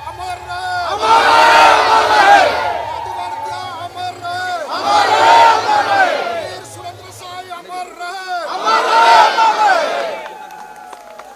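Men shout a slogan together, loudly, in repeated bursts.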